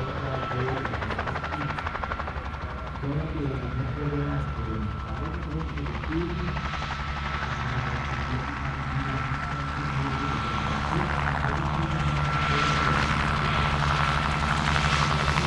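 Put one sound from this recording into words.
Helicopter rotor blades chop the air rapidly, growing louder.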